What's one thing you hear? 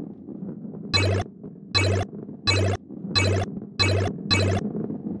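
Coins chime in quick succession as they are collected.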